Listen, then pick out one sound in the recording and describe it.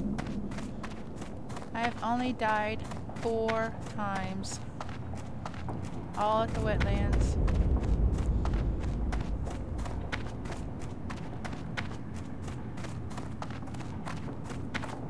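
Footsteps tread steadily on stone.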